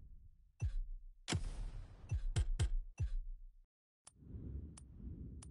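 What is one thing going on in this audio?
Short interface clicks and swooshes sound as menu options change.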